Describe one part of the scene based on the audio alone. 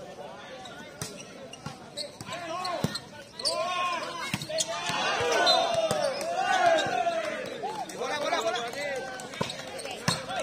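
A volleyball is struck with loud slaps.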